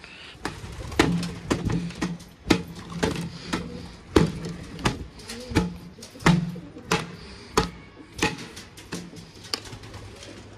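A stiff brush knocks against a wooden board in quick strokes.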